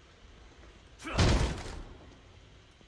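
A heavy wooden door swings open with a whoosh.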